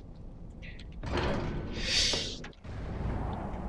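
A heavy wooden door swings open with a loud rush.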